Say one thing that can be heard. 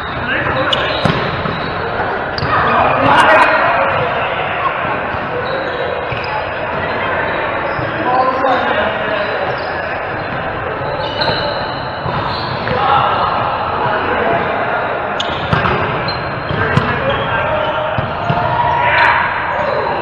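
A volleyball is struck hard by hand, echoing in a large hall.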